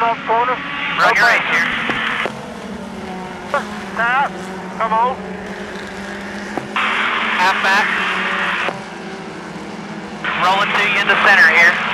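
Race car engines roar steadily around a track.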